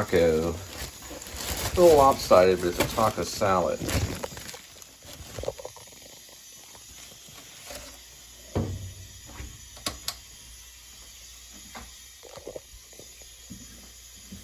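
A foam food container squeaks and creaks as it is opened.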